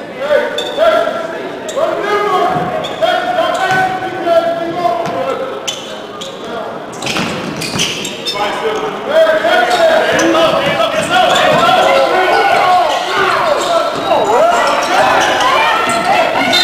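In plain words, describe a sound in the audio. Sneakers squeak on a hardwood floor in an echoing gym.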